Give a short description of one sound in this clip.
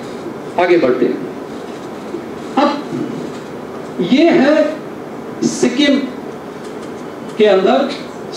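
A man speaks through a microphone in short phrases, heard in a room with some echo.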